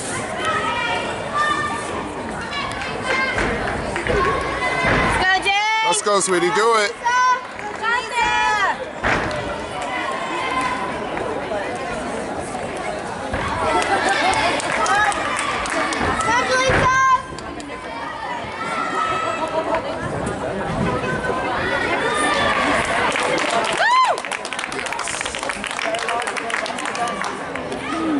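A crowd of girls and adults chatters in a large echoing hall.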